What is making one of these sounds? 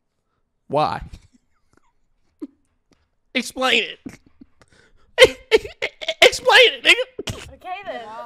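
A young man talks and laughs with animation, close to a microphone.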